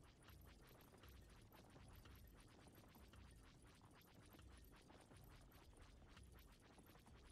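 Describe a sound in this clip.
Rapid laser blasts fire in quick succession.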